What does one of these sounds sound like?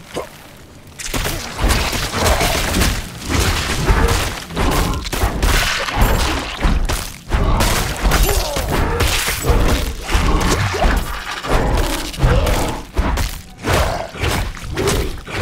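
Weapon blows and magic blasts thud and crackle in rapid bursts.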